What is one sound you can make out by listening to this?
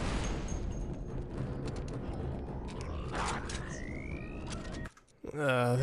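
Sharp blaster shots crack in quick bursts.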